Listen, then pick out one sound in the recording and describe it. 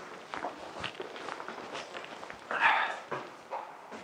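Footsteps climb stairs indoors.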